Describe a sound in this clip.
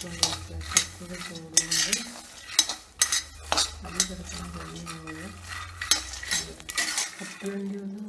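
A metal spatula scrapes and clicks against peanuts roasting in an iron pan.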